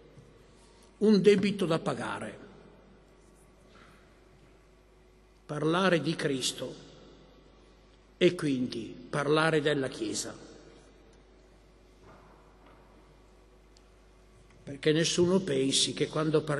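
An elderly man speaks slowly into a microphone, pausing between phrases.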